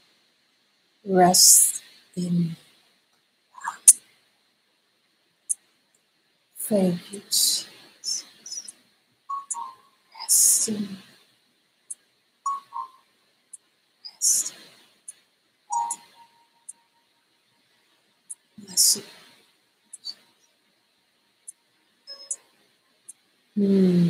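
A woman speaks slowly and calmly, close to a microphone, with long pauses.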